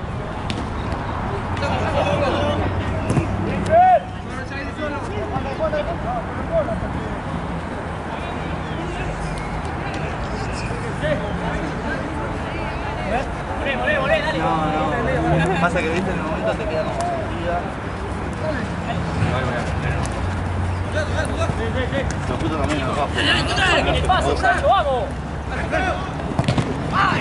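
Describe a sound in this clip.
Young men shout and call out to each other outdoors on an open field.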